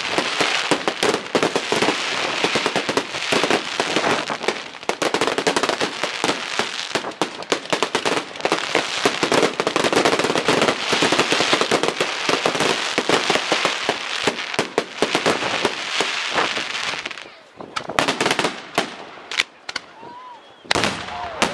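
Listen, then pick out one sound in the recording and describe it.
Fireworks crackle and bang rapidly overhead.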